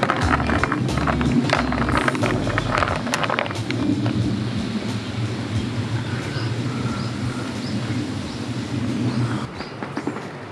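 Bubbles fizz and crackle in a glass of soda.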